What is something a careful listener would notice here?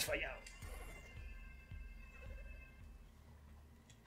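Electronic game sound effects chime and zap.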